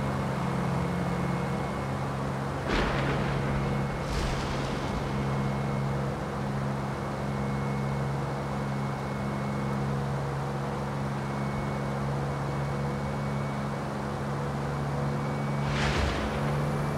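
A sports car engine drones steadily at high speed.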